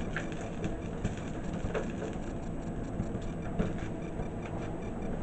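Burning plastic drips and crackles.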